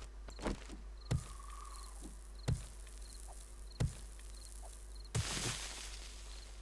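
A hammer knocks against stone several times.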